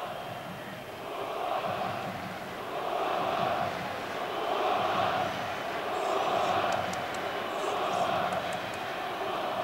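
A stadium crowd chants in loud rhythmic swells.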